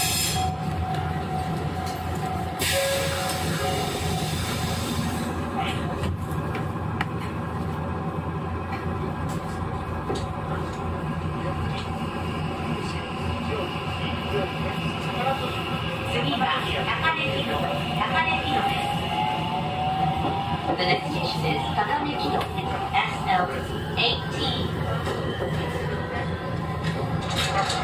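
An electric train hums steadily on the tracks.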